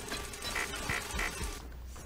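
A spinning saw blade whirs and grinds against metal.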